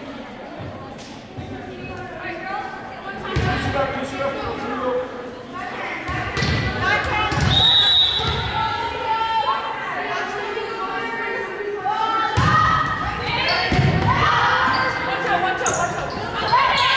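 A volleyball is struck with sharp slaps.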